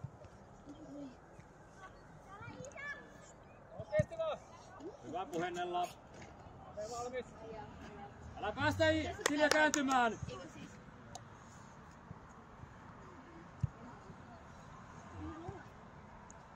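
Young players shout and call to each other outdoors, some distance away.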